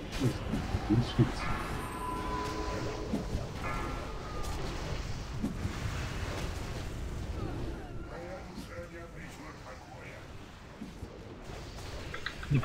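Magic spells crackle and chime amid a clashing fight.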